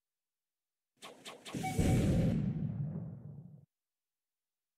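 A game character's attack bursts with a loud whoosh and a deep rumble that fades away.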